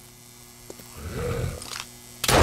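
A zombie growls nearby.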